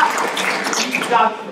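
A man speaks loudly from a stage.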